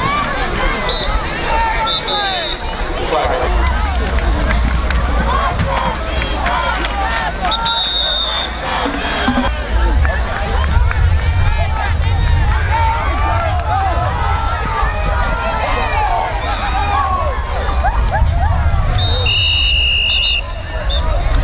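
A referee's whistle blows in short sharp blasts.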